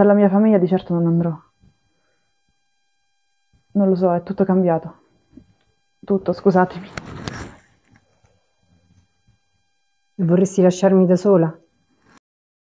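A woman sings slowly in a low, clear voice nearby.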